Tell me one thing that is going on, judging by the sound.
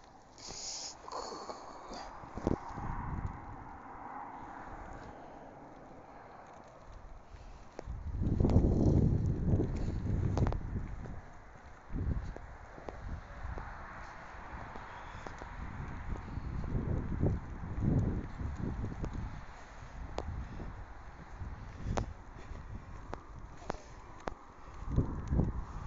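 Wind gusts outdoors, rumbling against the microphone.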